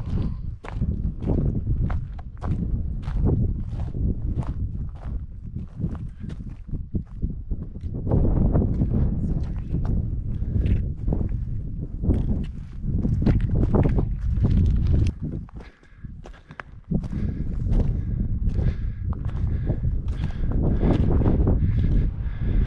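Footsteps crunch on loose rock.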